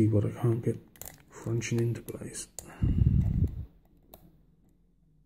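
A metal pick clicks and scrapes softly inside a lock.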